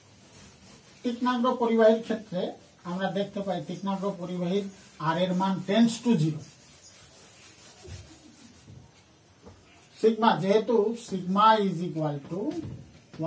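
A man speaks in a clear, lecturing voice close by.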